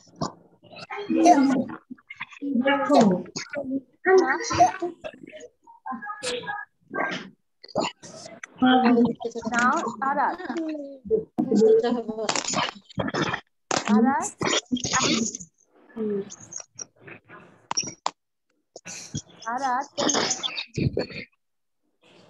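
Children speak over an online call, one after another.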